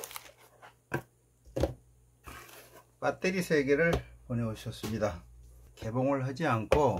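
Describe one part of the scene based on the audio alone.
Plastic battery packs knock softly onto a table.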